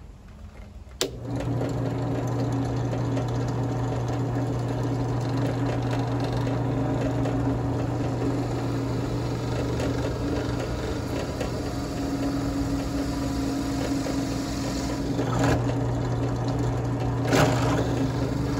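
A benchtop drill press switches on and its motor hums.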